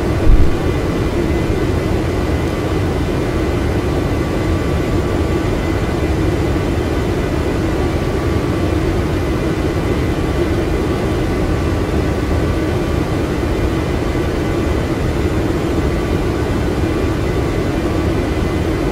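Jet engines roar steadily inside a cockpit.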